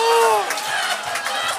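A man whoops with high-pitched laughter.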